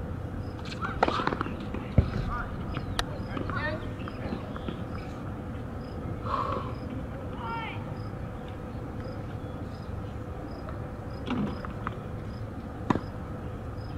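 A tennis racket strikes a ball with a sharp pop.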